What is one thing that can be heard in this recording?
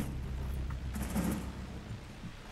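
Gunshots crack in a quick burst.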